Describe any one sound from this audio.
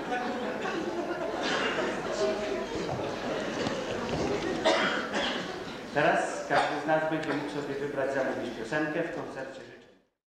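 A middle-aged man speaks close to a microphone, with feeling.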